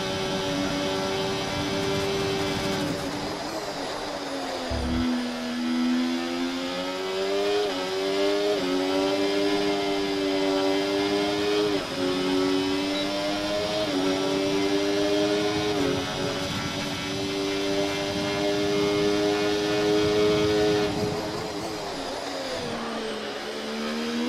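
A racing car engine roars steadily, its pitch climbing and dropping sharply with each gear change.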